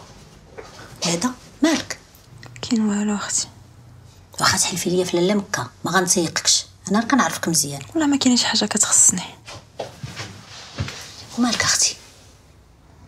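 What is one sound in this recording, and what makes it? A middle-aged woman speaks with feeling close by.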